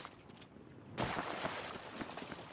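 Heavy footsteps thud on hard ground after a jump.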